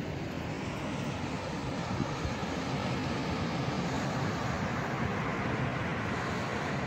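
Sea waves wash and break over rocks nearby.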